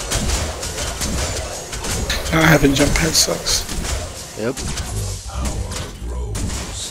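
Magic blasts and weapon hits crackle and thud in a fast fight.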